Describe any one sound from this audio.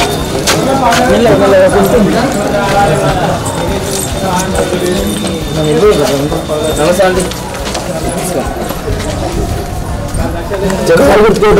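Several men and women talk at once nearby, with animation.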